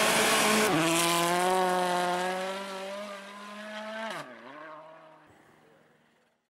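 A rally car engine roars at high revs, shifting gears and fading into the distance.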